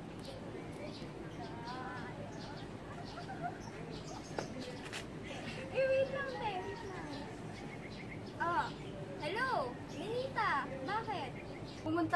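Two young women chat with animation outdoors.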